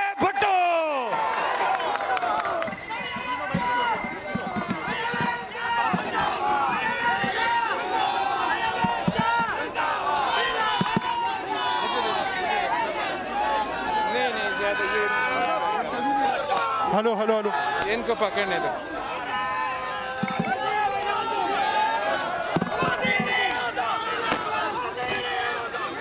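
A large crowd of men shouts and chants loudly outdoors.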